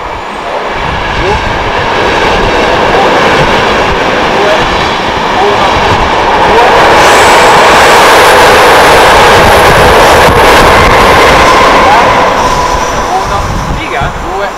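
A train rumbles past nearby, growing louder and then fading.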